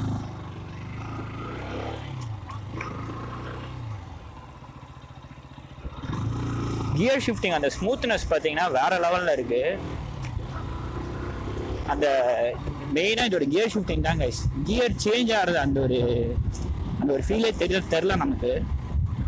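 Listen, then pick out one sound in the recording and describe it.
A motorcycle engine hums and revs as the bike rides along.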